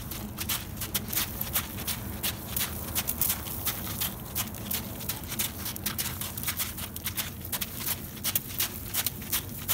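A horse's hooves thud rhythmically on soft ground as it trots.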